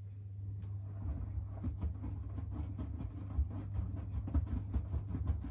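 Laundry tumbles and thumps inside a washing machine drum.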